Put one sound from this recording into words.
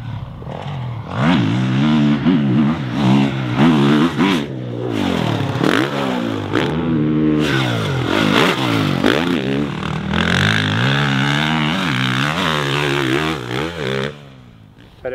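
A dirt bike engine revs loudly and roars past.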